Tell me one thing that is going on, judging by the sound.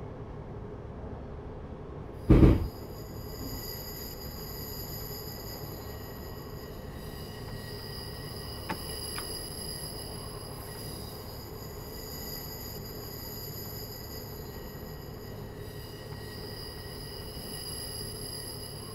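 A train rumbles steadily along the rails with a low electric hum.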